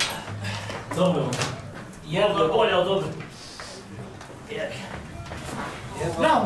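A young man talks cheerfully nearby.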